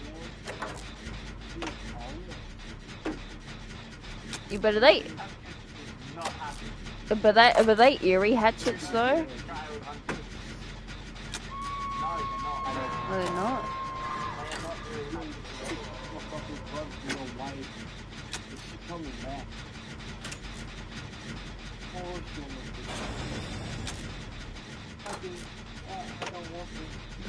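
Metal parts of an engine clank and rattle as they are worked on by hand.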